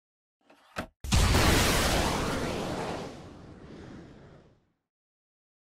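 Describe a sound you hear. Wooden furniture crashes and breaks apart with a loud rumble.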